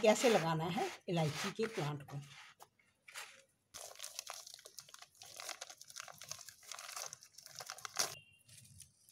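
Hands scrape and crumble loose soil with a dry rustle.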